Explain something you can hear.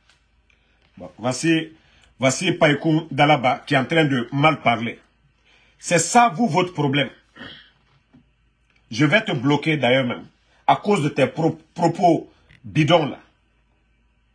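A man speaks calmly and earnestly, close to a microphone.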